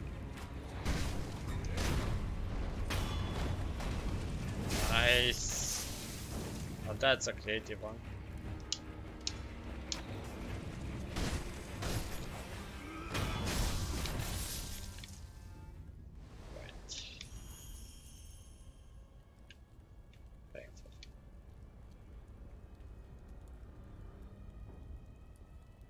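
Fire crackles nearby.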